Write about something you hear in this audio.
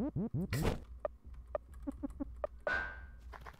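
Short electronic blips click several times.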